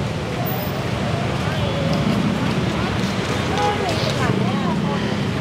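Men and women pedestrians chat in passing.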